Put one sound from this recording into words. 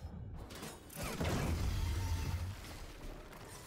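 A magical blast booms with a deep rumble.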